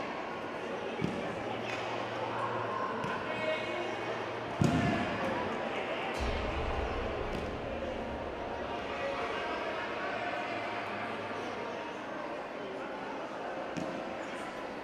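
Bodies thud onto padded mats.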